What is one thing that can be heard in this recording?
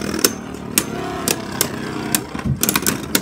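Spinning tops clack sharply against each other.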